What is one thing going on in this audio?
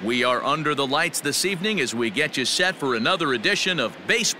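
A large crowd murmurs in a stadium.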